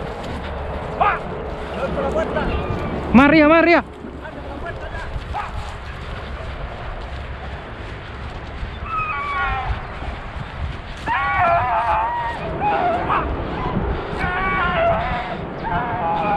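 Dogs bark and yelp outdoors.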